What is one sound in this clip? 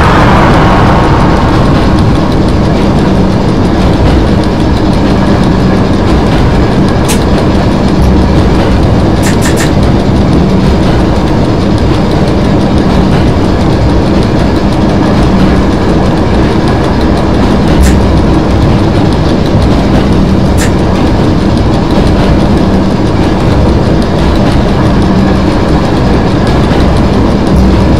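An electric train rumbles and hums steadily along the track.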